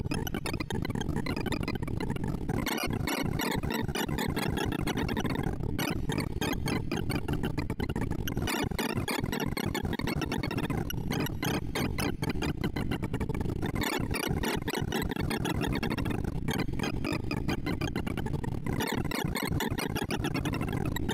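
Rapid electronic beeps chirp in a fast, busy stream.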